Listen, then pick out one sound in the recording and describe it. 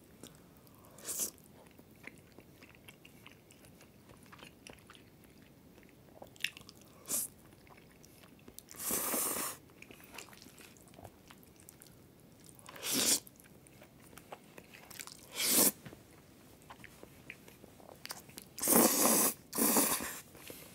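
A young man loudly slurps noodles up close.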